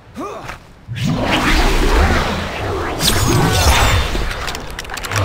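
A sword swishes through the air.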